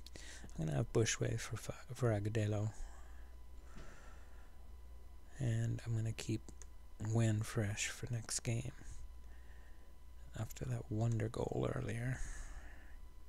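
An older man talks calmly into a close microphone.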